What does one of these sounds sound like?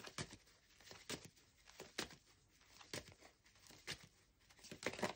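Playing cards shuffle and riffle softly in a hand, with crisp repeated flicks.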